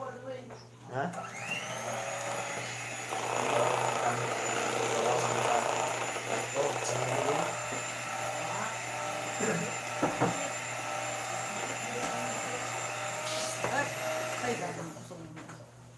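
An electric hand mixer whirs steadily as it beats batter.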